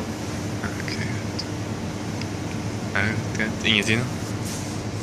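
A young man mumbles quietly close by.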